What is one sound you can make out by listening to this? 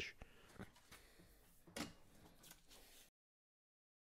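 A sheet of paper rustles as it is moved.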